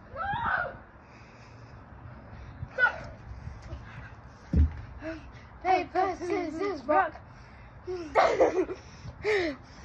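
A young girl squeals and laughs loudly nearby.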